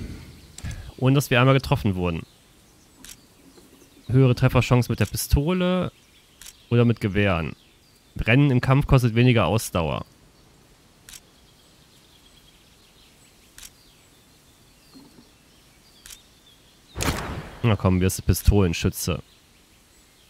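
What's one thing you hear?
A man talks calmly and closely into a microphone, in short bursts.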